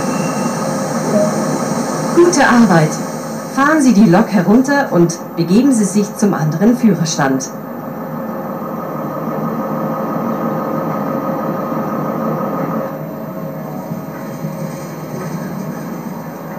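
A locomotive engine hums steadily.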